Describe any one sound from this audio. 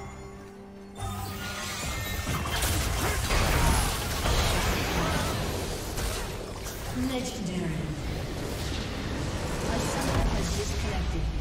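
Magic blasts and impacts crackle and clash in a hectic fight.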